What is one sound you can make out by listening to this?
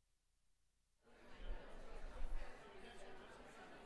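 A crowd of men and women chat at once.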